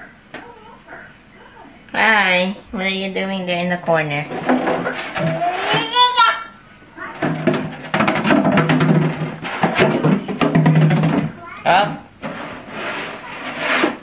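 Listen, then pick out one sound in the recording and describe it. A plastic jug scrapes and knocks on a wooden floor.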